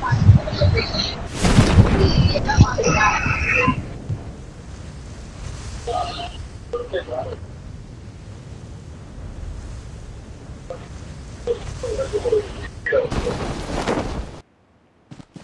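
Wind rushes steadily past a falling parachutist.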